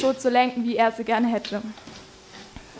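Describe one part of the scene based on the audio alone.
A young woman speaks calmly in a room with a slight echo.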